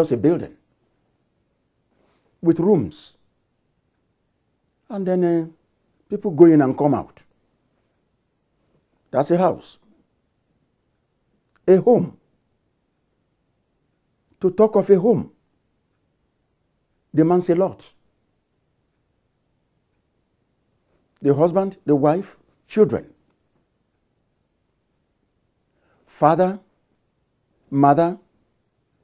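A middle-aged man speaks calmly into a close microphone, in short phrases with long pauses.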